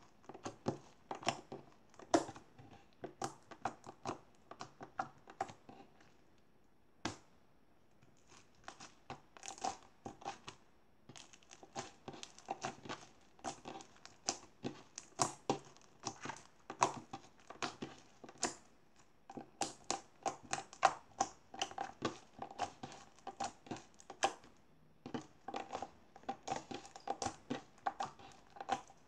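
Sticky slime squelches and pops as it is squeezed by hand, close by.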